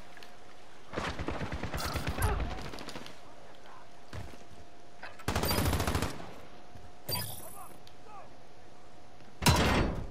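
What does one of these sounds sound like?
Automatic gunfire rattles in short, loud bursts.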